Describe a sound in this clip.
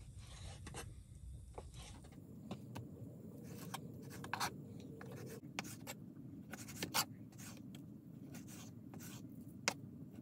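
A knife taps and scrapes on a wooden board.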